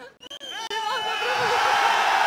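A large audience cheers and shouts.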